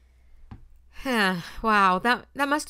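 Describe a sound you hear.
A young woman speaks with animation, close up.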